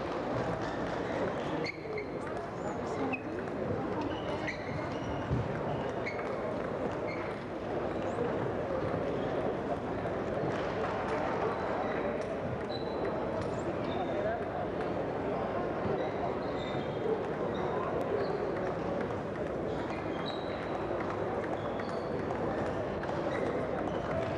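A table tennis ball clicks back and forth on a table and paddles.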